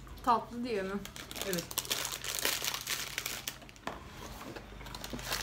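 A plastic snack wrapper crinkles in someone's hands.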